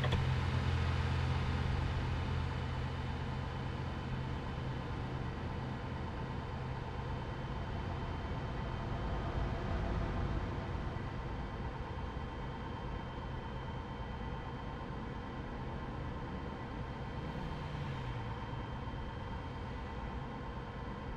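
A truck engine drones steadily while driving.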